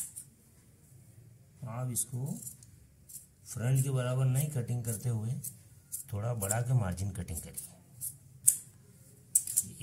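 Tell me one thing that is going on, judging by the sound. Scissors snip through cloth.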